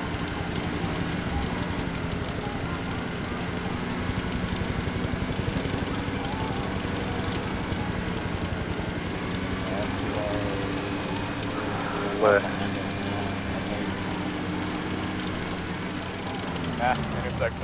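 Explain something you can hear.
A tracked armoured vehicle's engine rumbles steadily as it drives.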